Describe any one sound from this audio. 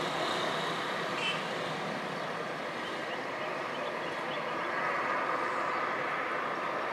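Town traffic rumbles steadily in the distance.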